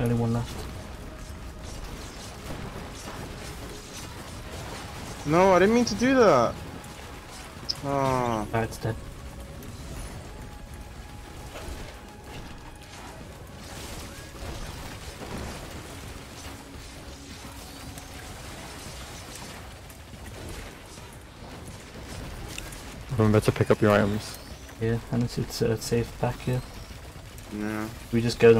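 Video game weapons fire and explosions burst.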